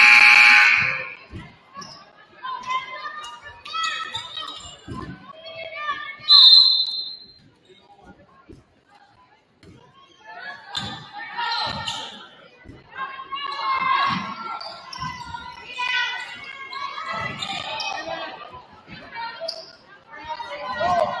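A basketball bounces on a wooden court with thuds.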